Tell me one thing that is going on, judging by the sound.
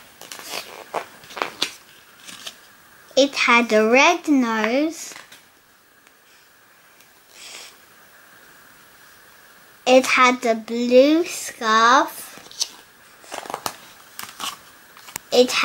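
A paper page of a book is turned.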